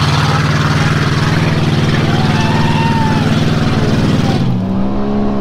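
A truck engine roars loudly nearby.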